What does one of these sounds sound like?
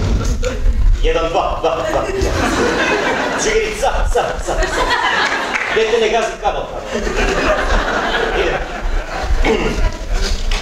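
A young man speaks with emotion into a microphone, heard through loudspeakers in a large hall.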